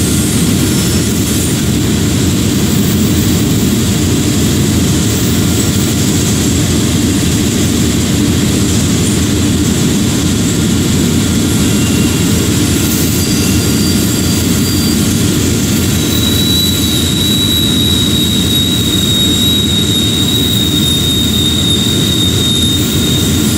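A diesel locomotive rumbles steadily along the track.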